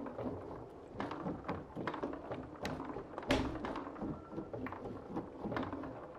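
A foosball ball clacks against rods and figures.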